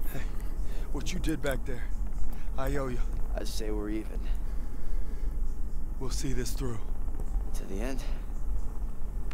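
A young man speaks quietly and wearily, close by.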